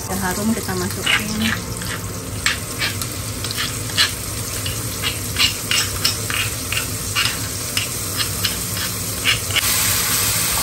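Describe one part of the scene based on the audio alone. A spoon scrapes and knocks against a stone mortar.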